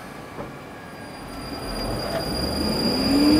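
An electric train starts pulling away with a rising hum and rumble.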